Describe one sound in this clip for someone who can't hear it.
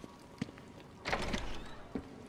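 Footsteps scuff across a hard floor.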